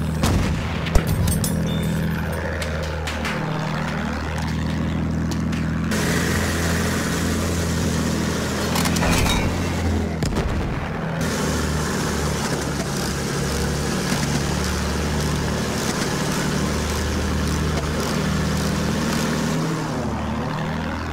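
A propeller plane engine drones steadily, shifting in pitch as the plane turns and dives.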